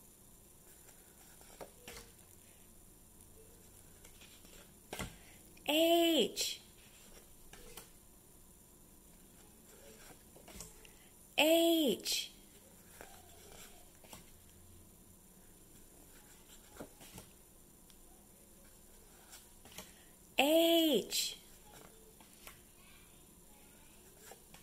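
Paper cards rustle and slide softly as hands shuffle them.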